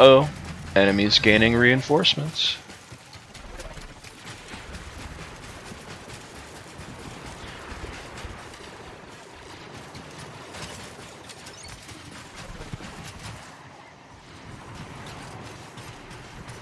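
Footsteps run quickly over hard ground.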